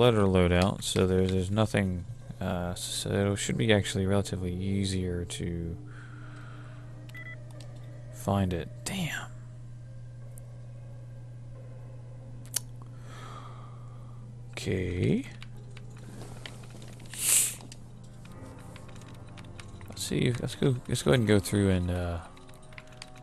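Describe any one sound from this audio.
A computer terminal hums steadily.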